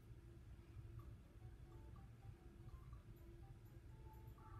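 Cheerful video game music plays with short bright notes.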